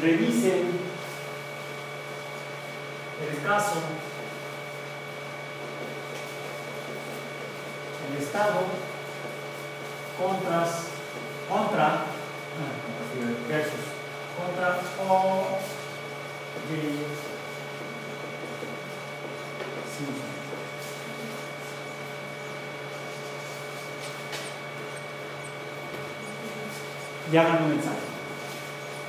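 A man speaks calmly in short bursts with pauses, as if presenting.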